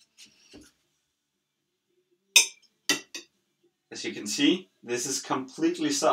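A knife scrapes on a plate.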